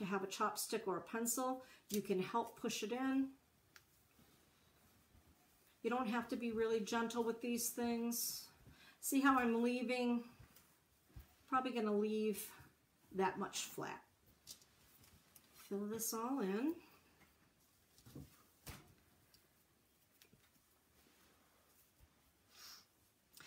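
Fabric rustles softly in a woman's hands.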